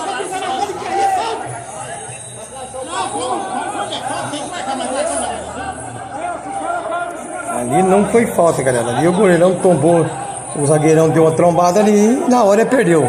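Several men shout and argue at a distance outdoors.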